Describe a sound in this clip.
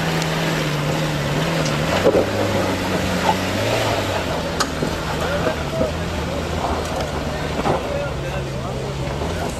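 Tyres crunch and spin on loose gravel.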